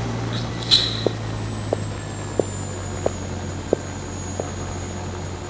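Footsteps tap at an even pace on a hard floor.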